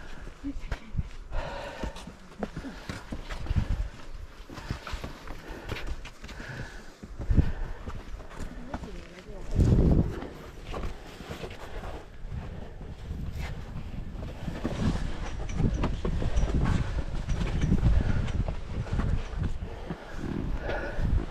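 Footsteps scuff on rock outdoors.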